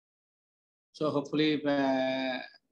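A second man speaks calmly through an online call.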